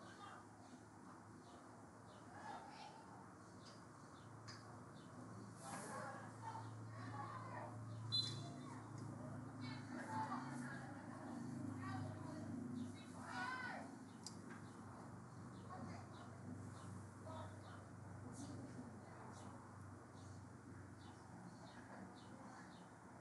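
Young women shout to each other from a distance across an open field outdoors.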